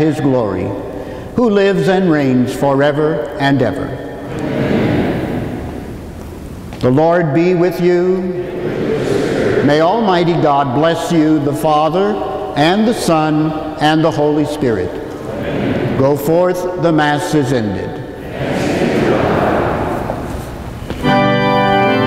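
An elderly man chants in a large echoing hall.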